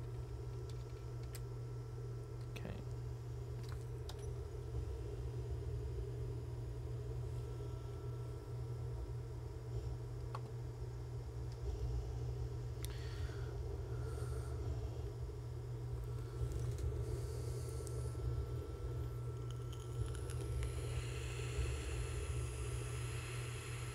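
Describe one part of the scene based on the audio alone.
A spaceship's engines hum with a steady low drone.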